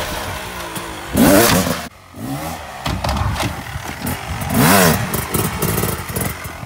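A dirt bike engine revs up and down sharply close by.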